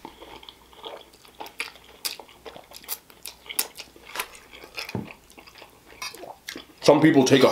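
A man slurps noodles close to a microphone.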